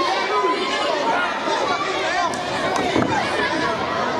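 A wrestler's body slams onto a ring mat with a heavy thud.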